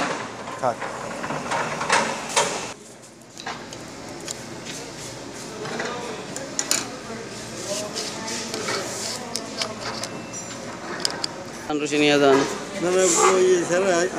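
Metal gear parts clink and click as they are handled.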